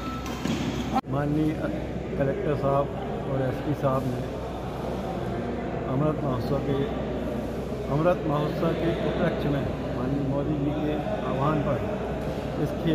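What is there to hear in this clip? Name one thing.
A middle-aged man speaks calmly and close by, in a large echoing hall.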